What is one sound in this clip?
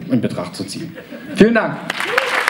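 A man speaks into a microphone on a stage.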